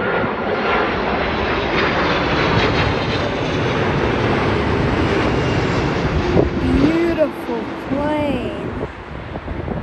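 A jet airliner roars loudly overhead, its engine whine slowly falling in pitch.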